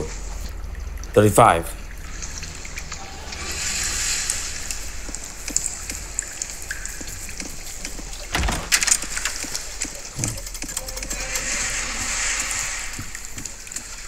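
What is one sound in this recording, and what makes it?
Footsteps thud on a wooden floor.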